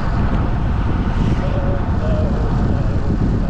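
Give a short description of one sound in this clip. A motorcycle engine hums as it passes close by.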